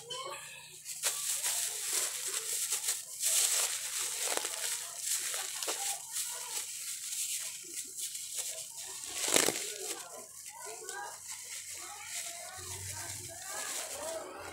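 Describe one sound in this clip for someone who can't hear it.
Plastic bags rustle and crinkle as they are handled.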